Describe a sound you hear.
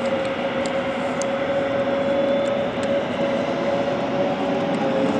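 A twin-engine turbofan airliner taxis with its engines whining steadily.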